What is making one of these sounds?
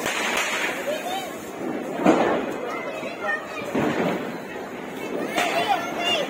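A small firework fizzes and sputters on the ground nearby.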